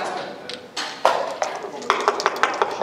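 Wooden checkers click and clack against a board.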